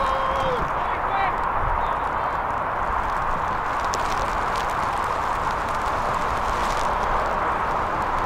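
Wind rushes steadily across an open field.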